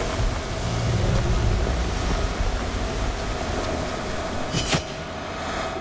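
A sword clashes against metal armour.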